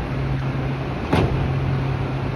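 Train doors slide shut with a thud.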